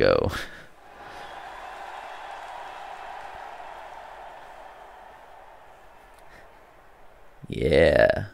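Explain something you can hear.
A large crowd roars steadily in a big stadium.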